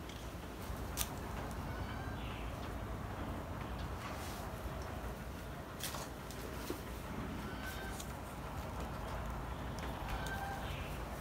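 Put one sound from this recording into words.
Pruning shears snip through small twigs.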